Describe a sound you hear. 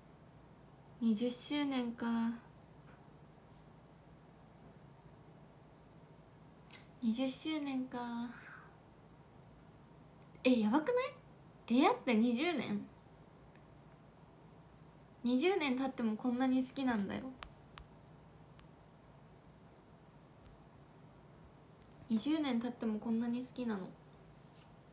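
A young woman speaks softly and cheerfully in short bursts close to a microphone.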